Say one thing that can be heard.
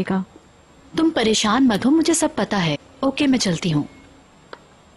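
A second young woman answers calmly, close by.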